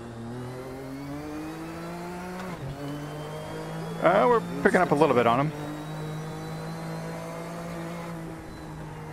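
A racing car engine revs steadily, rising in pitch and dropping as the gears shift.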